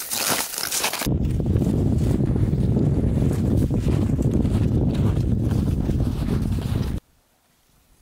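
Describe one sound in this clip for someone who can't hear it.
Strong wind roars outdoors.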